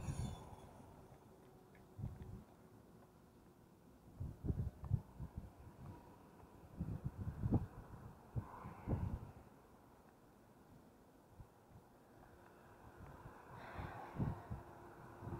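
Wind buffets a microphone outdoors.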